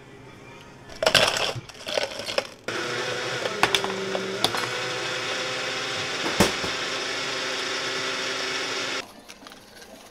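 Ice cubes clatter into a plastic cup.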